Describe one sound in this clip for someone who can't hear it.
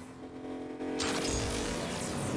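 A car boosts with a sudden rushing whoosh.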